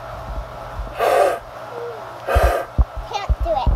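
A young girl blows into a conch shell with a short breathy blast.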